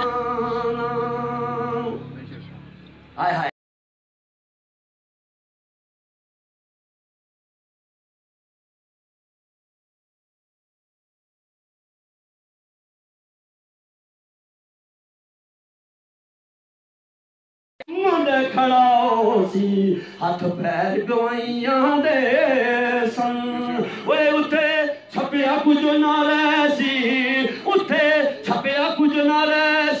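A man speaks forcefully into a microphone, heard through a loudspeaker.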